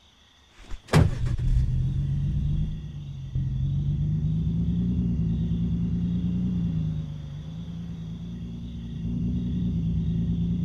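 A pickup truck engine roars as the truck drives off.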